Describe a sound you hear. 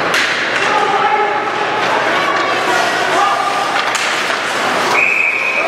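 A crowd of spectators shouts and cheers in a large echoing rink.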